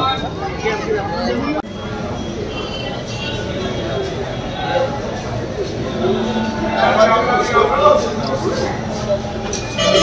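A middle-aged man speaks calmly among a group of men.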